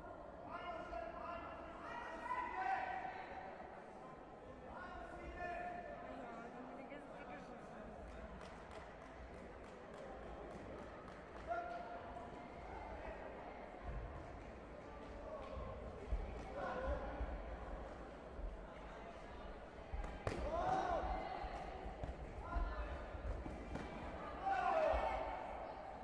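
Spectators and coaches shout and cheer in a large echoing hall.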